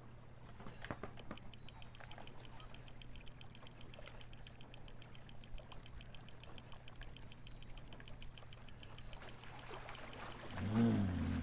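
A fishing reel clicks rapidly as the line winds in.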